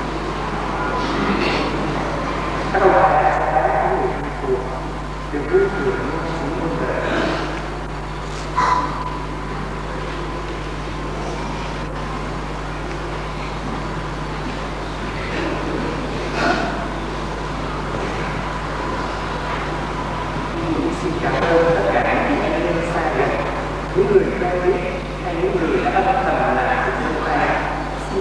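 A man speaks calmly through a microphone and loudspeakers in an echoing hall.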